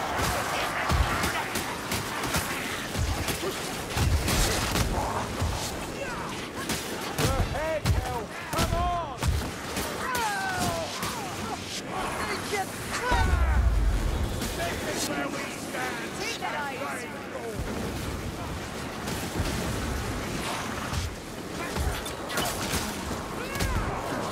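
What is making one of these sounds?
Monsters snarl and shriek.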